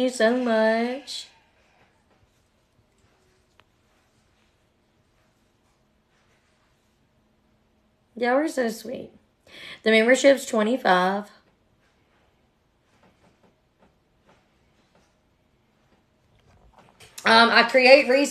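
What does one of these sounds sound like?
A young woman speaks calmly and close up, with long pauses.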